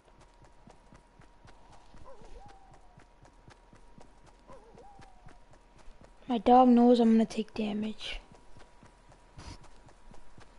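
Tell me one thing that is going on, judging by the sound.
Quick footsteps patter across grass.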